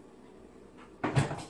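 A dishwasher door is pushed up and thumps shut.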